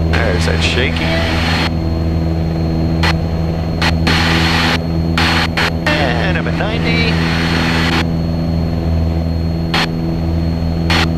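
A small plane's propeller engine drones steadily and loudly.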